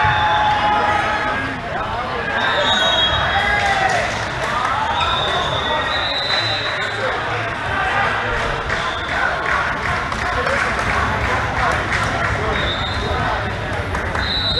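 Several men call out and chatter in a large echoing hall.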